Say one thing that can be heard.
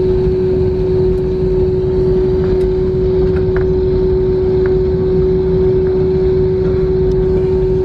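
Tyres rumble over the ground as an airliner taxis.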